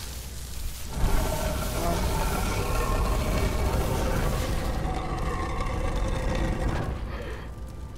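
Heavy stone machinery rumbles and grinds loudly.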